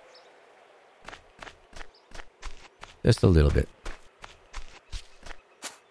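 Footsteps tread steadily along a dirt path.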